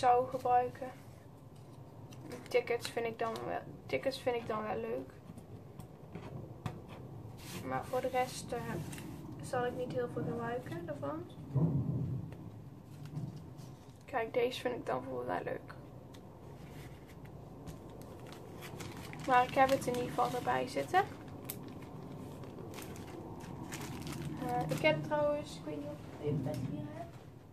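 Paper pieces rustle and shuffle between hands.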